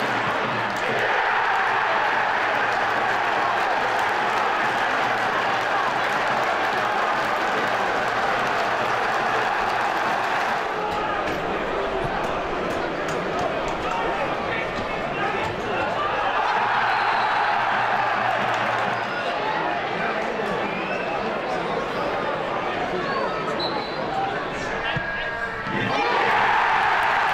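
A large football stadium crowd roars and cheers.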